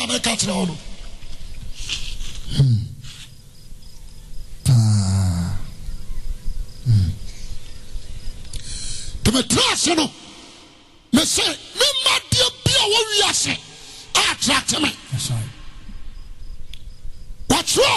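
A young man speaks with animation into a microphone, heard through loudspeakers.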